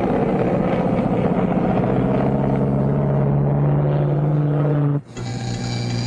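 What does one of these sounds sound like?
A propeller plane drones overhead.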